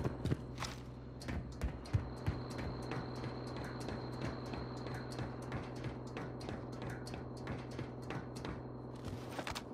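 Footsteps clank on metal ladder rungs during a climb.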